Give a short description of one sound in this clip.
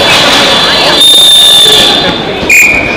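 A referee blows a whistle.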